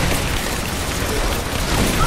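A fire crackles nearby.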